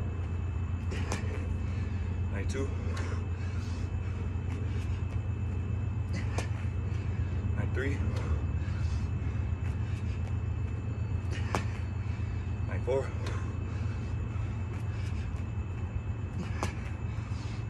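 Hands and feet thump onto a mat in a steady rhythm.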